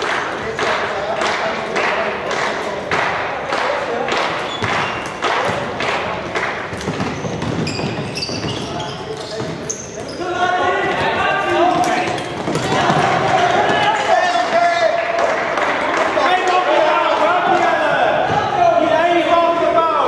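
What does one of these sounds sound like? Players' sticks click against a ball in a large echoing hall.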